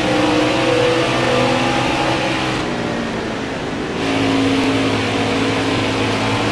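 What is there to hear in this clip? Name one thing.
A race truck engine roars steadily at high speed, its pitch shifting slightly.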